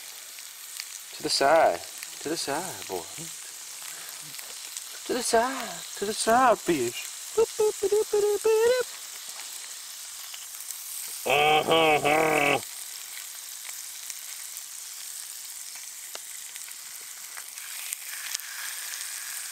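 Fish sizzles softly in a hot pan.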